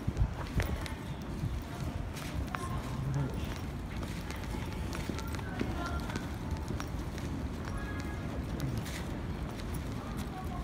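Footsteps tap on paving stones close by.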